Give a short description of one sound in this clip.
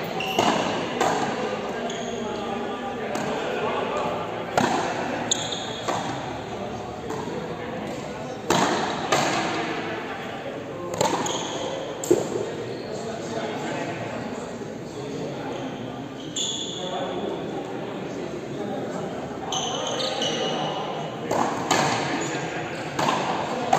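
A ball smacks off a wall and bounces on a hard floor.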